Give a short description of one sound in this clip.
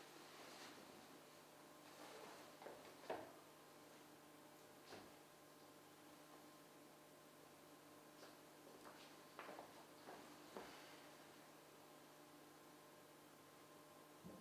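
Heavy fabric rustles as trousers are handled.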